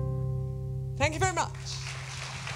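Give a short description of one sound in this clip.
A woman sings a closing note with a quick vocal flourish through a microphone.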